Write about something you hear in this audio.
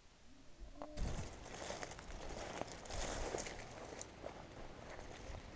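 Dry grass rustles and swishes as someone walks through it.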